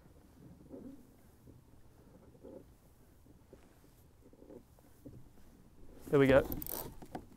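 Water laps gently against a small boat's hull.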